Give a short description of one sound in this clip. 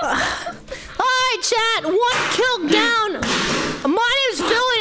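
A young woman laughs with high, excited squeals.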